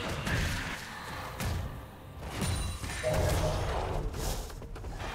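Game spell effects and hits clash and crackle in a team fight.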